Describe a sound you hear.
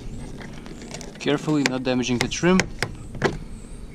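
A screwdriver pries at plastic trim with scraping clicks.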